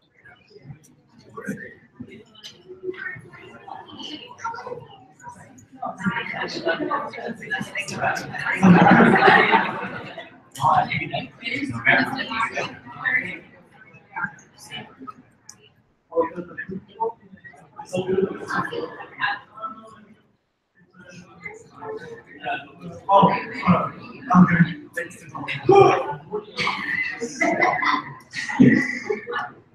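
Several adults chat at a distance in a large echoing room.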